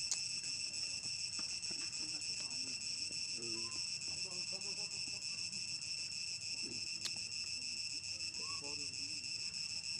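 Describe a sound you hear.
A plastic wrapper crinkles in a monkey's hands.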